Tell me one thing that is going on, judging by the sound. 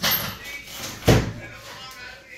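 Heavy weights thud onto a rubber floor.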